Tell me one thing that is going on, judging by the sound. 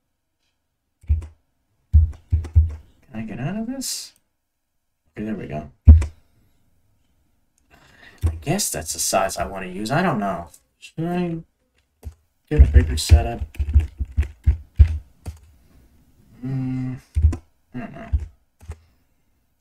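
Menu selection sounds click and chime as options change.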